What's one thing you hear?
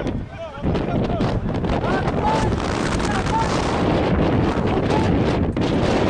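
Players shout to one another in the distance outdoors.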